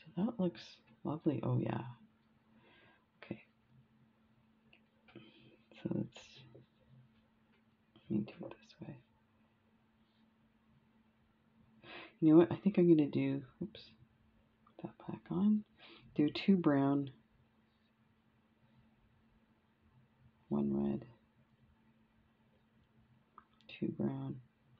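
Small beads click softly against each other.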